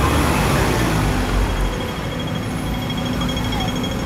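A bus engine hums as it passes close by.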